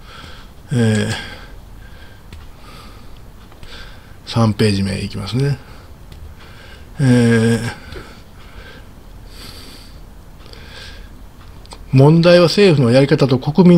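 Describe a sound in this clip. An older man speaks calmly in short bursts into a microphone, as if on an online call.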